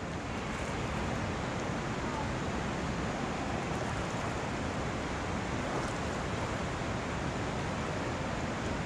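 Water splashes and laps around a swimmer close by.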